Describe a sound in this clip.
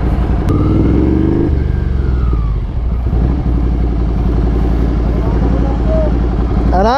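A motorcycle engine rumbles close by, revving up and settling as the bike rolls slowly.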